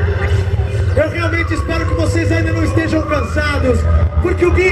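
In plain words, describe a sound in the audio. A man sings into a microphone over the music.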